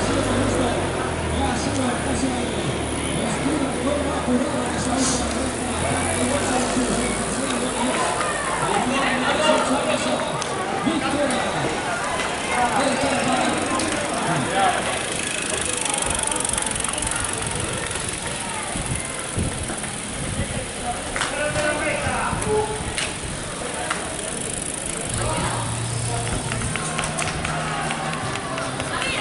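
A crowd of onlookers chatters and cheers outdoors.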